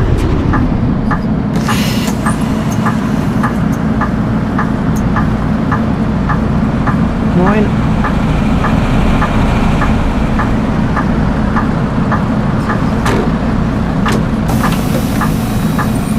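A bus warning signal beeps steadily and quickly.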